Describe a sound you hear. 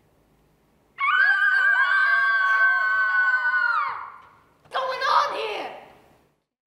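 A group of young people scream loudly.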